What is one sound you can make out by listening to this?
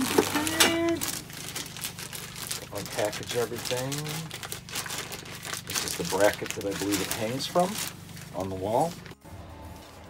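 Plastic wrapping crinkles and rustles in a man's hands.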